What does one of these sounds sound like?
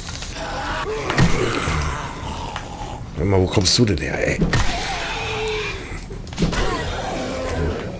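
A spiked club thuds into a zombie's body.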